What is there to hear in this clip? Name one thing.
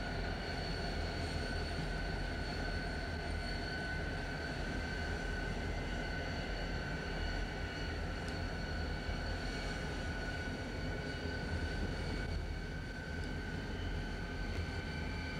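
Diesel locomotives rumble and idle steadily nearby.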